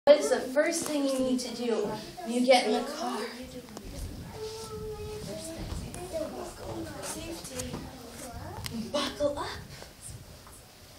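A woman speaks with animation nearby.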